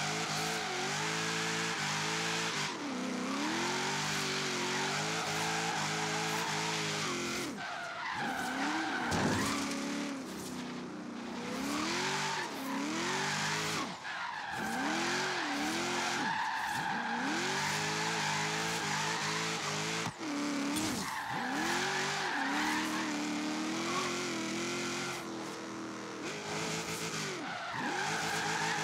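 Tyres screech as a car drifts around bends.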